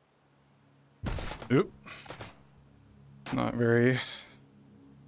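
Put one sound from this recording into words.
A rifle fires a few sharp shots.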